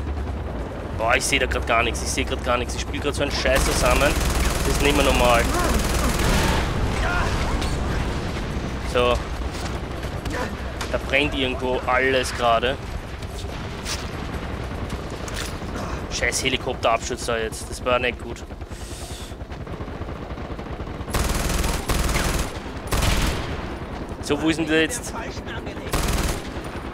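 A rifle fires in sharp bursts of shots.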